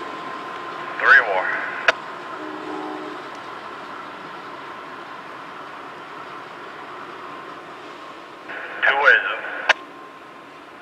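A train horn blows in short loud blasts nearby.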